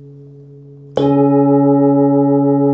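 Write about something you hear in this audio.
A mallet strikes a metal singing bowl, which rings out loudly.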